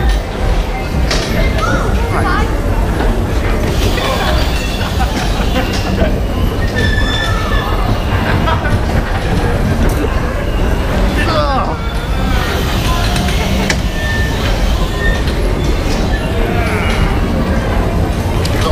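Children and adults shout and squeal in a busy crowd.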